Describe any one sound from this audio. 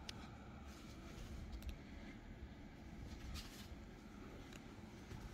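Fingers rub and rustle against fabric close by.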